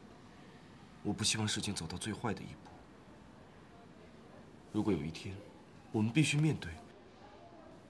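A young man speaks quietly and calmly, close by.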